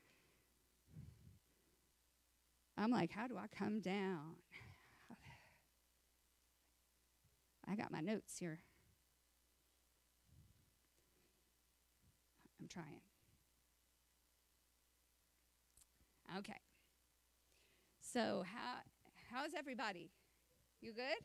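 A woman speaks calmly into a microphone, heard through loudspeakers in a large hall, with pauses.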